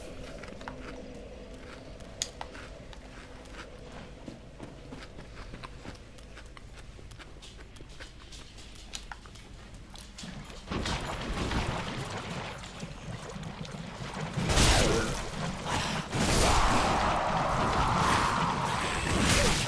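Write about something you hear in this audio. Footsteps in armour clatter on stone.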